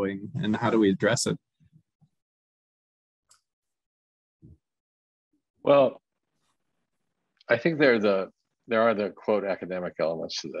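An elderly man speaks calmly over an online call.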